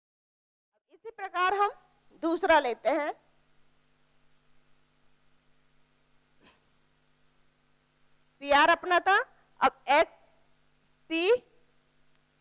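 A woman speaks through a microphone, explaining calmly in short phrases.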